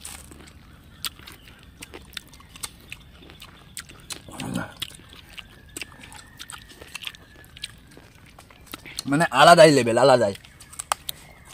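A young man bites and crunches a piece of fruit.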